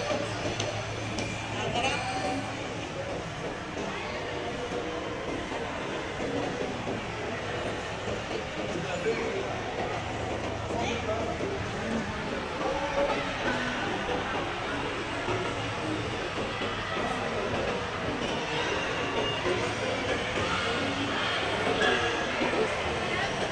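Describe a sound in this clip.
A crowd murmurs with many voices echoing through a large hall.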